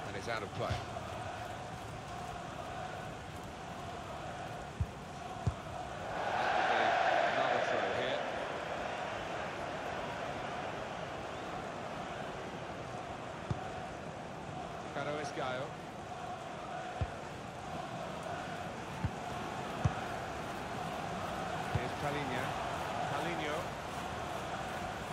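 A stadium crowd murmurs and chants steadily.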